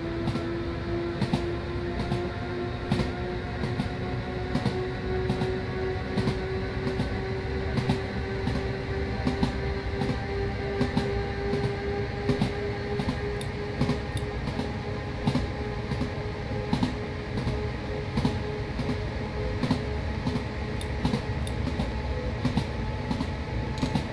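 A train's electric motor hums steadily, its whine rising slowly in pitch.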